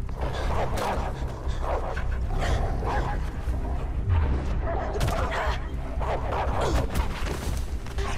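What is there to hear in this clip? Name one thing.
A man grunts and cries out as he struggles.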